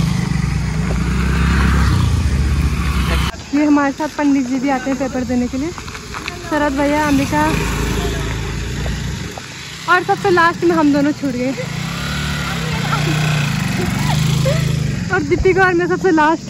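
Motor scooter engines hum and putter close by.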